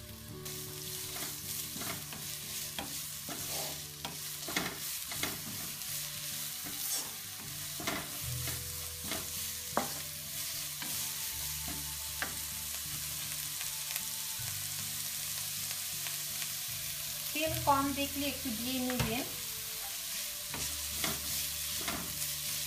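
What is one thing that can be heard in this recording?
Onions sizzle steadily in a hot pan.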